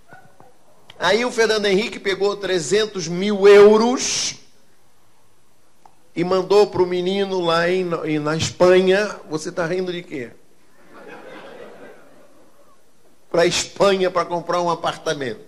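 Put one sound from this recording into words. A middle-aged man speaks with animation through a microphone, in bursts with pauses.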